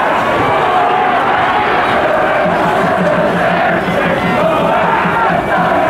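A large crowd sings and cheers from the stands.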